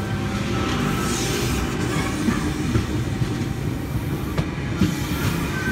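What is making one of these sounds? A train rumbles past close by, with wheels clattering on the rails.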